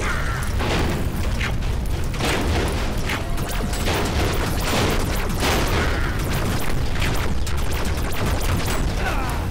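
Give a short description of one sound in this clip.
Cartoon explosions boom and crackle repeatedly.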